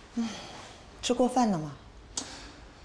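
A middle-aged woman asks a question calmly, close by.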